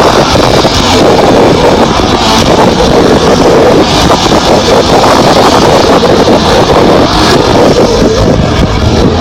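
A crowd of young men and women shouts and cheers loudly close by, heavily distorted.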